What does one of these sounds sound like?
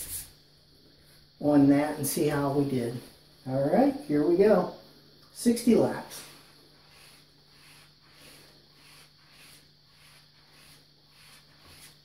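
A razor blade swishes back and forth along a leather strop in a steady rhythm.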